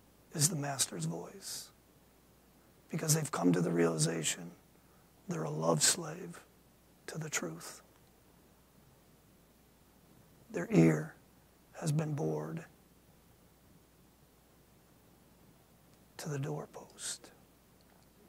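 A middle-aged man speaks calmly in short phrases with pauses, in a room with a slight echo.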